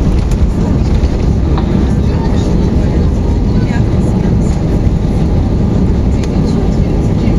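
An airliner cabin rumbles and rattles as the wheels roll over the runway.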